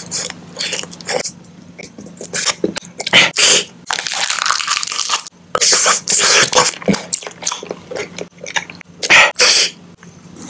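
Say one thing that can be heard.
A man chews and smacks his lips close up.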